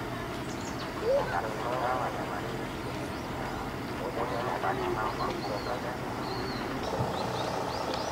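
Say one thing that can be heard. A crowd of passengers chatters on a boat.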